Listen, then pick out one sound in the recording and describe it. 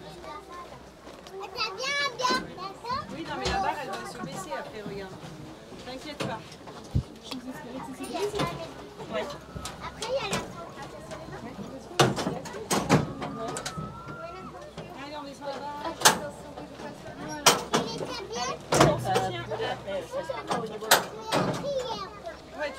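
A child speaks in a high voice nearby.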